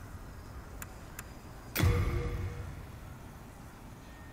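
Soft clicks sound as a menu is navigated.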